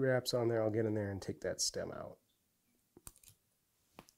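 Small scissors snip through soft fibres.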